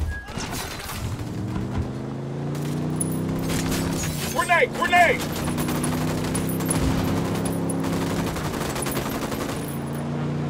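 A pickup truck engine revs as the truck pulls away.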